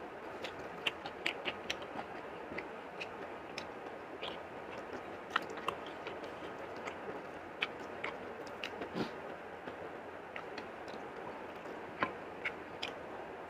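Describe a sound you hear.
Fingers tap and scrape against a plate with small clicks.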